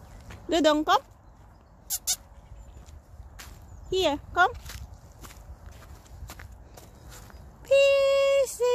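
Footsteps crunch slowly on frosty grass.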